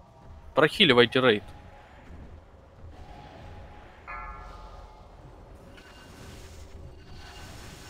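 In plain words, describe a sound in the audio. Magic spells whoosh and crackle during a battle.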